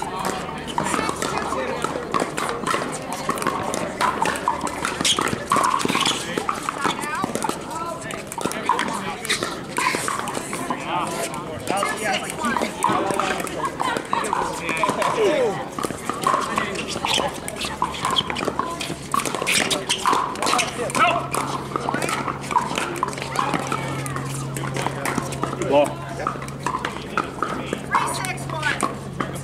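Paddles pop against a plastic ball in quick rallies.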